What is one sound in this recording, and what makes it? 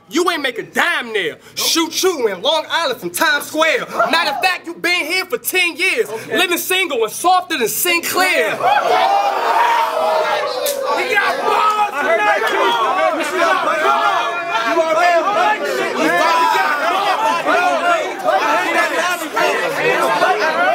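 A young man raps aggressively and loudly, close up.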